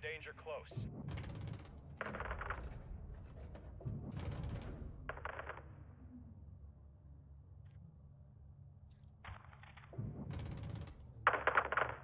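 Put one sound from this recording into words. Heavy cannon rounds explode with deep, rumbling booms.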